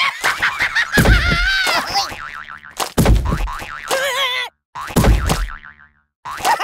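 Heavy thuds land as a springing toy clown smacks a ragdoll.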